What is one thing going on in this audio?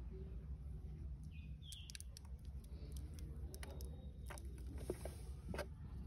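Hands handle soil and roots with soft rustling and crumbling.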